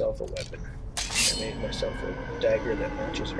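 A blade scrapes as a sword is drawn.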